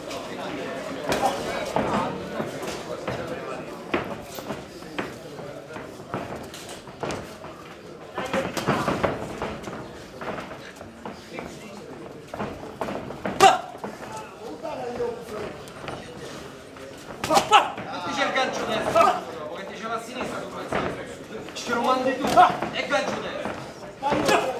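Boxing gloves thud against bodies and gloves.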